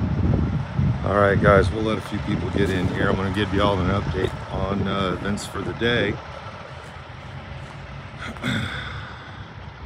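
An older man speaks calmly, close to the microphone.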